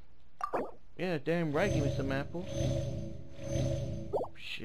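A bright magical chime rings out with warbling tones.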